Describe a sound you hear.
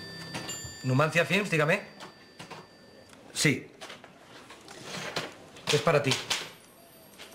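A man speaks animatedly into a telephone close by.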